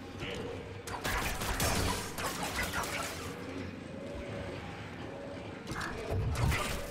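Blades clash with sharp crackling hits.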